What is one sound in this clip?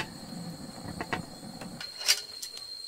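A fire crackles and hisses under a pot.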